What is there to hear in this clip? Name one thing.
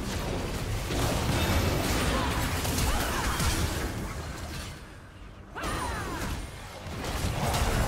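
Spell effects crackle and burst in a video game fight.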